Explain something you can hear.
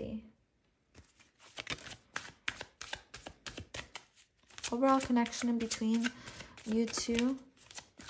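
Playing cards are shuffled with quick, soft flicks.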